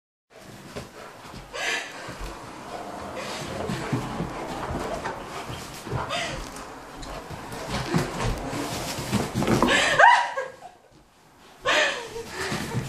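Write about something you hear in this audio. A dog thumps and bounces around on a soft mattress.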